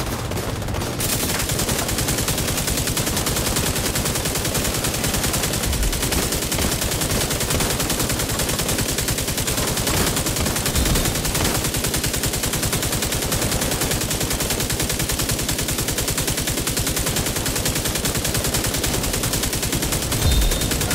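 Automatic rifle fire rattles rapidly and without pause.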